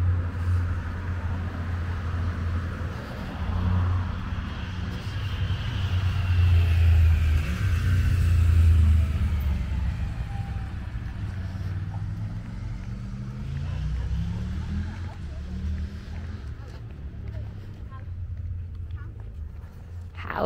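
Stroller wheels roll on pavement.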